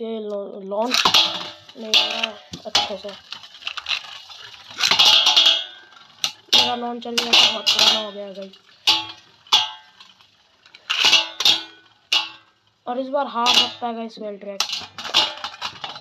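Spinning tops whir and scrape around a metal pan.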